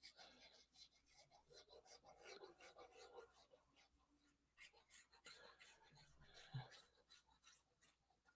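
A sponge dabs and rubs softly on card.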